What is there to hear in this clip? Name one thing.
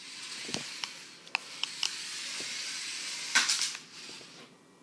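A small toy car's electric motor whirs at high pitch.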